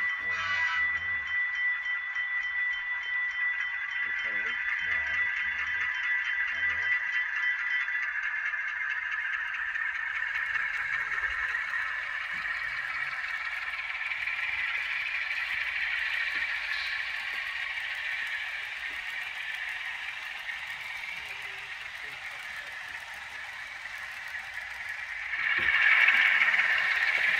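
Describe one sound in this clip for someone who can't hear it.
A model train locomotive hums and whirs as it rolls along the track.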